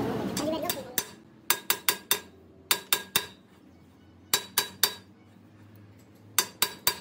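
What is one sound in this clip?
A metal ring clinks and rattles against a steel shaft.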